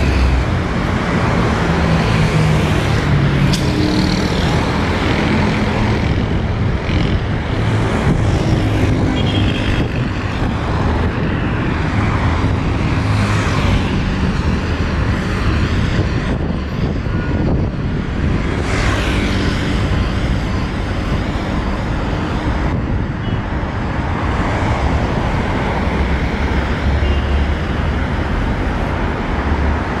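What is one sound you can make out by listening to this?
Steady traffic rumbles along a wide road outdoors.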